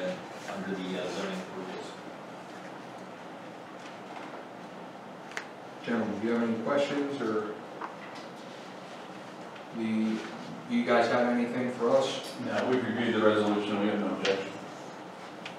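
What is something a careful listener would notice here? Men speak calmly into microphones in a room with a slight echo, with pauses between remarks.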